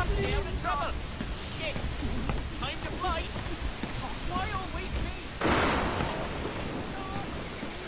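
Footsteps thump on wooden planks.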